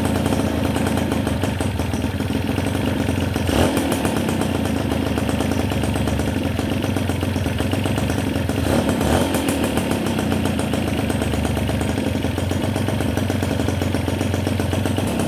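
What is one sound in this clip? A motorcycle engine idles with a steady rattling putter, close by.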